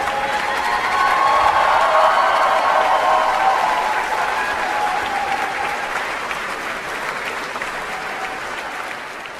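An orchestra plays a final sustained chord.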